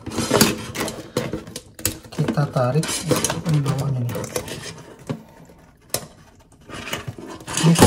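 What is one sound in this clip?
A crab shell cracks and crunches as it is pulled apart.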